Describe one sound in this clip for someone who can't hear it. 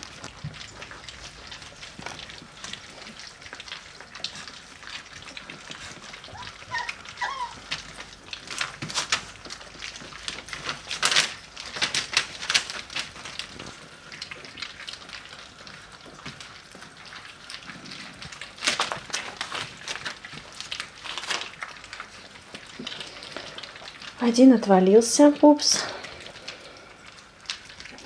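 A metal bowl clinks and scrapes as puppies push at it.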